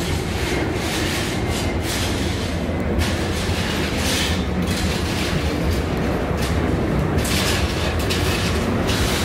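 A passenger train rumbles steadily past close by.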